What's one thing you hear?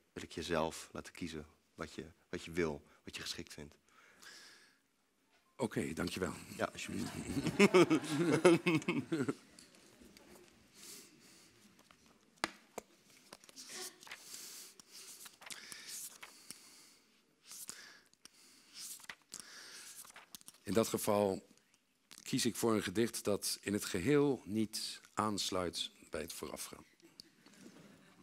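A man speaks calmly through a microphone in a large, echoing hall.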